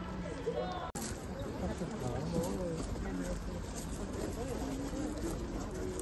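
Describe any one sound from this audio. A crowd of men and women murmur and talk among themselves.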